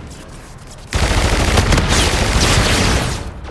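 A loud blast roars and rumbles with crackling debris.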